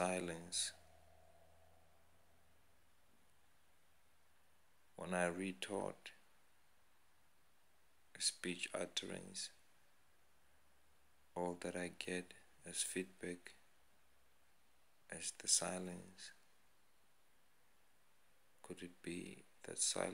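A man speaks close to a phone microphone in short bursts with pauses.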